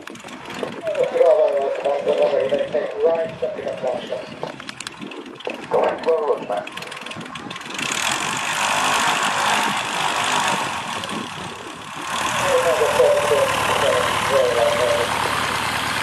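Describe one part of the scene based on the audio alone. A light single-engine propeller plane taxis past close by, its engine droning.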